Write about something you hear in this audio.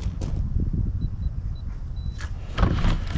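An electronic keypad beeps several times.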